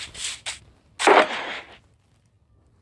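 A box opens with a hollow clatter.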